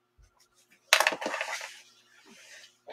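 Cloth rustles as it is slid across a table.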